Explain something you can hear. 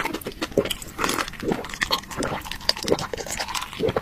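A young man sips and gulps a drink.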